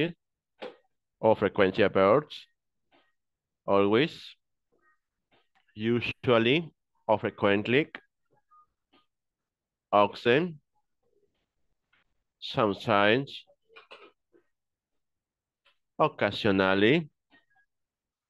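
A woman speaks slowly and clearly through an online call, in short phrases with pauses.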